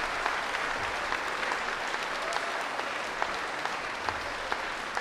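Many people clap steadily in a large echoing hall.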